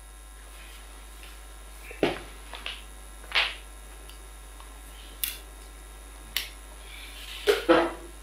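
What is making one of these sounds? People shuffle and move about as they stand up.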